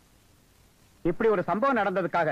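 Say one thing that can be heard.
A man speaks loudly and firmly to a crowd.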